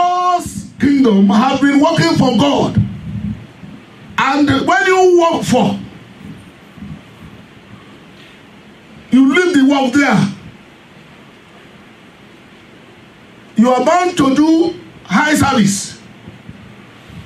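A middle-aged man preaches with feeling into a microphone, in bursts with pauses, through a loudspeaker.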